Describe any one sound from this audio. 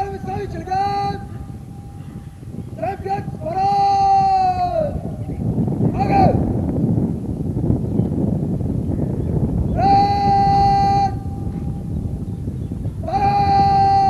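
A man shouts long drawn-out parade commands, loud and close, outdoors.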